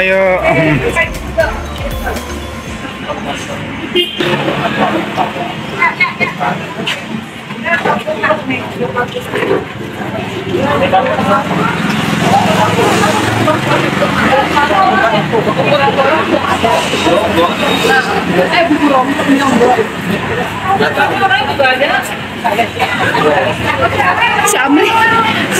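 Women talk and laugh nearby outdoors.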